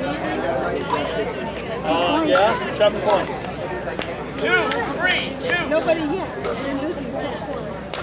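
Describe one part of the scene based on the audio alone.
Paddles pop against a plastic ball.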